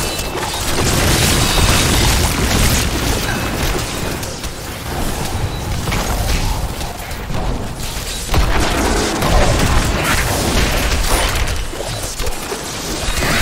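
Spells and weapons crash and explode in a fast, busy game battle.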